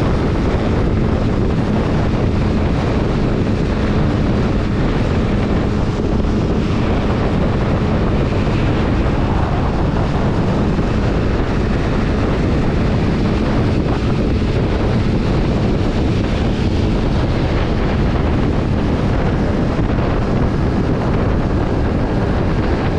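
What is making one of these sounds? A motorcycle engine hums steadily at speed.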